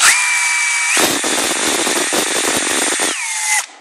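A drill bit grinds into hard plastic.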